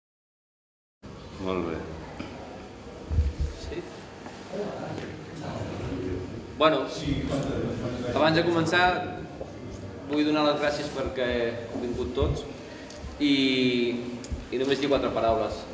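A man speaks calmly to an audience in a room with some echo.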